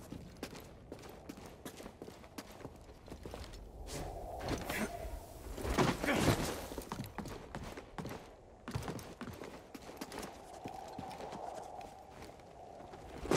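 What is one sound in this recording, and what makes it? Footsteps thud quickly on rock.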